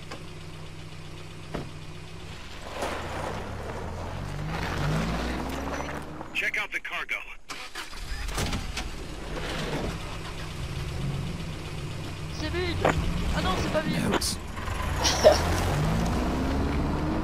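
A truck engine rumbles and revs nearby.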